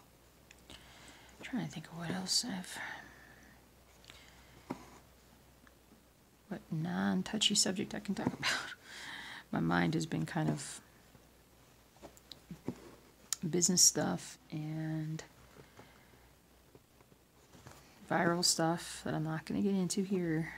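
A needle and thread are pulled through cross-stitch fabric.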